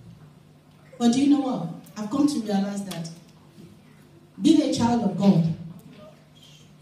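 A woman speaks with feeling into a microphone, heard through loudspeakers in a large room.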